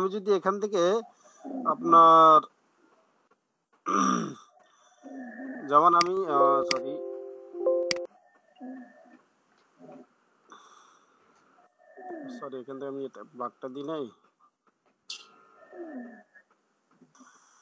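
A young man speaks calmly through an online call.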